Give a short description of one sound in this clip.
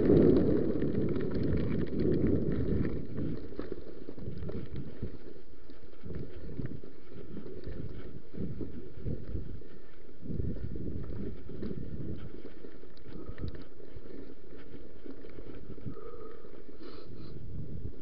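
Wind rumbles against the microphone of a moving bike.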